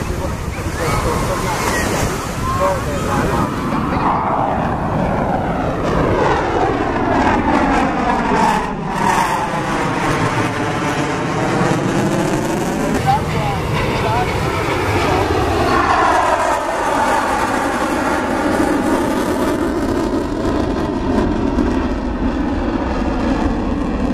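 A jet plane roars loudly overhead, its pitch sweeping down and up as it passes.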